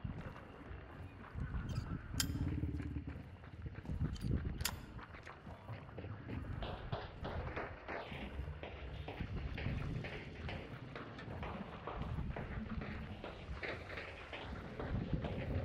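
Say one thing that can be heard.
Footsteps thud slowly on creaking wooden boards.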